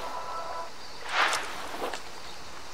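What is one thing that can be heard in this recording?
Paper rustles as notes are picked up.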